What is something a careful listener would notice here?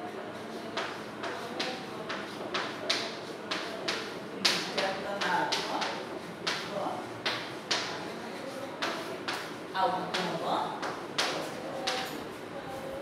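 Chalk taps and scrapes on a blackboard in quick strokes.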